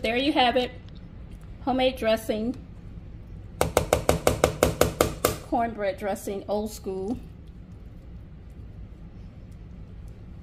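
A fork stirs a thick, wet mixture in a bowl.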